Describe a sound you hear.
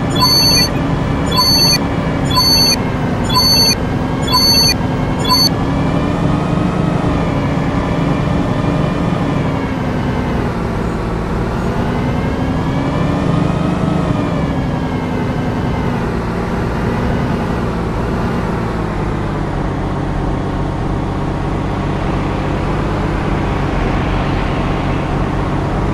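A bus engine hums steadily, rising and falling in pitch.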